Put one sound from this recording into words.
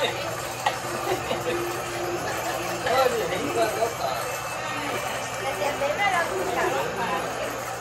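Young women laugh nearby.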